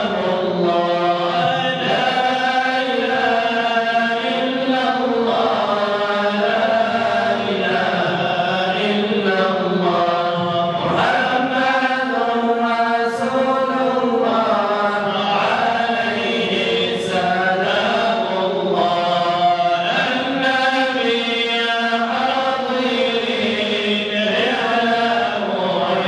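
Young men sing together into microphones, loud and close.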